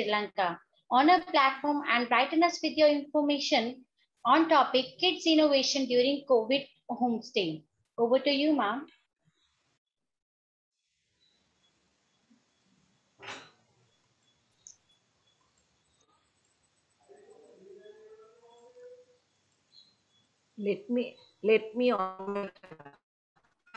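A woman speaks calmly over an online call.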